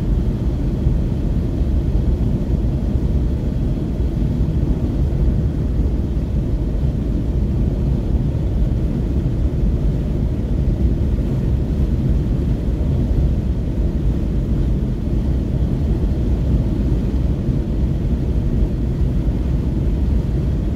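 Tyres roll over asphalt.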